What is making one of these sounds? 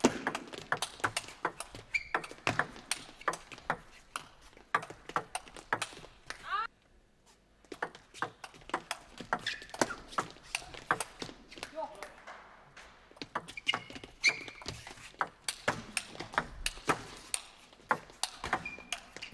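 A ping pong ball clicks quickly back and forth off paddles and the table.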